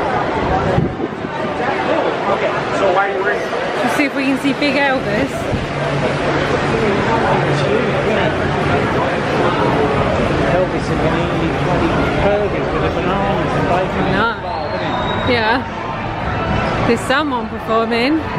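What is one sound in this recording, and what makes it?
A crowd murmurs and chatters in a large, echoing hall.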